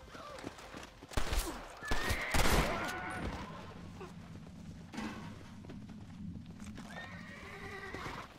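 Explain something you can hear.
Horse hooves thud at a walk on a dirt path.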